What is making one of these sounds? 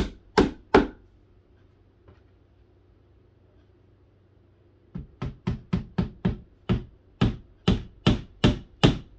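A hammer taps sharply on wood in quick repeated blows.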